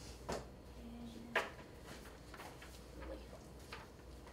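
A young woman speaks calmly in a room.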